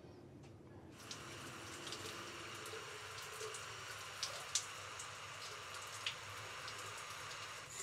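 Shower water runs and splashes steadily.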